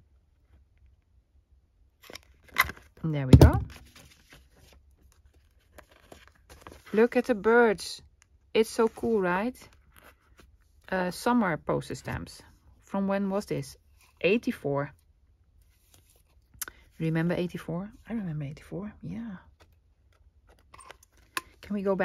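Stiff paper rustles as it is handled.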